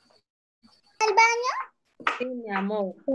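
A child speaks loudly over an online call.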